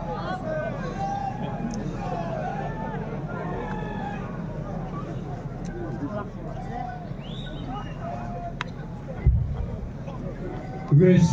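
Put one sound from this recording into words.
A large crowd murmurs and chatters loudly all around.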